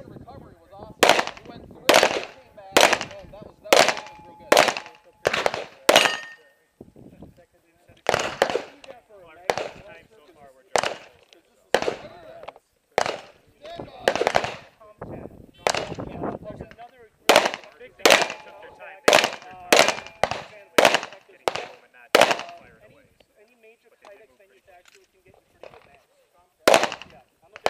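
A handgun fires shots in quick bursts outdoors, each crack echoing off a nearby hillside.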